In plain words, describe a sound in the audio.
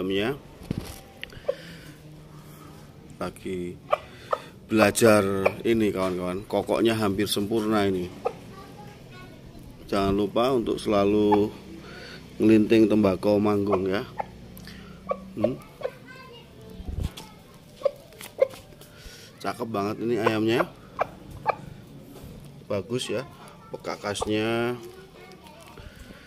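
A rooster pecks repeatedly at a bowl with light knocks.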